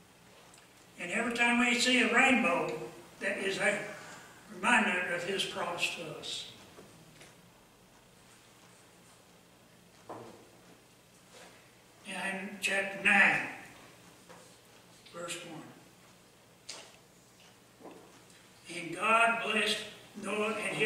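An elderly man speaks slowly and earnestly into a microphone, with long pauses.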